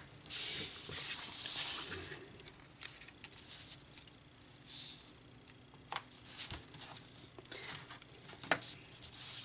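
Paper rustles and slides as hands handle card stock.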